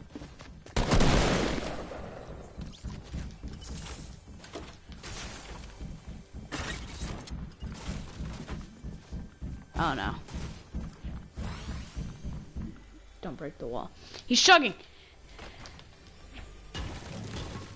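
Gunshots fire in a video game.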